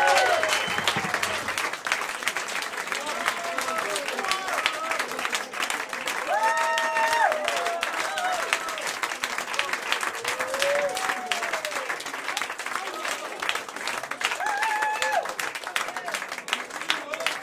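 A crowd of men and women cheers and whoops.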